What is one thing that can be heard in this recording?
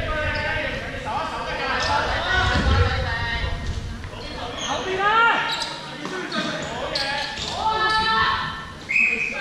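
Sports shoes squeak sharply on a wooden floor.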